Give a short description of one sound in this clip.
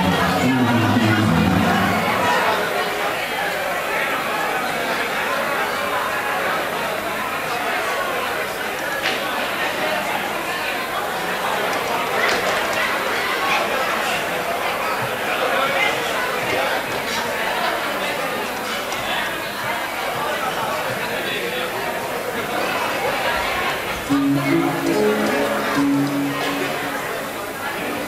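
A clarinet plays short phrases nearby.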